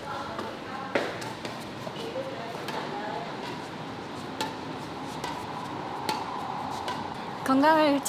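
A shuttlecock is struck with a racket in sharp taps.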